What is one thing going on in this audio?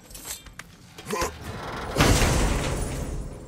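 A heavy chest lid creaks open.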